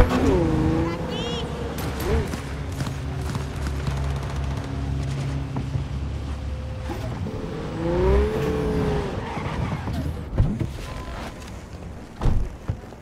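A car engine roars as a car drives fast and drifts.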